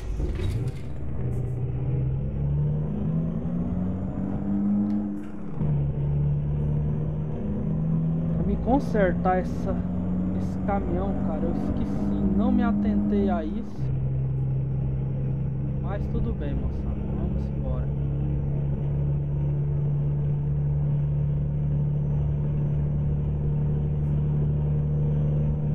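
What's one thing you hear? A truck engine drones steadily, its pitch dropping as gears change.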